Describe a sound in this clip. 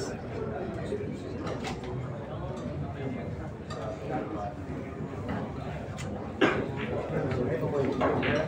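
A crowd murmurs and talks in a large room.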